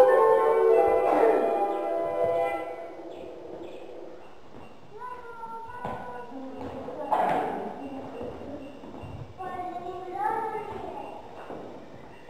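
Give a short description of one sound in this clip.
Young children sing together.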